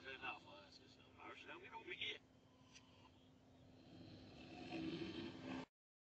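A large creature snores heavily through a television speaker.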